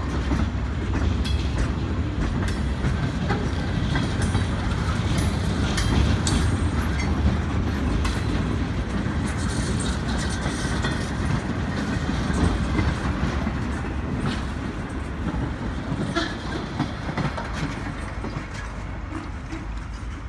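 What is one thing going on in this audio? Freight car wheels clack and squeal over the rail joints.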